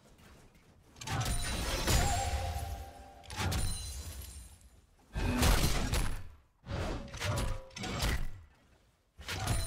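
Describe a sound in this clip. Video game spell effects crackle and boom in bursts during a fight.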